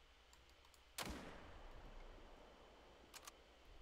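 A rifle fires once with a loud crack that rings out and fades.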